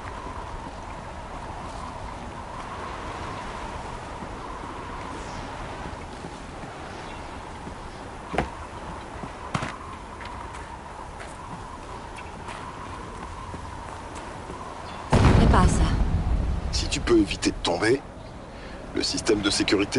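Footsteps crunch on snow and rocky ground.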